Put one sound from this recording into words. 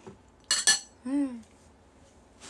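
A young woman laughs briefly close by.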